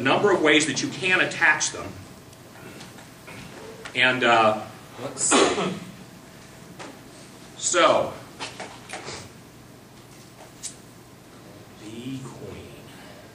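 A man speaks in short bursts in a room with a slight echo.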